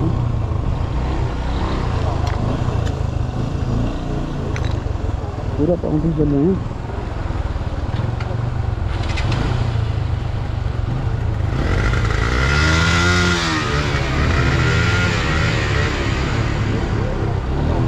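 A motorcycle engine idles and rumbles steadily close by.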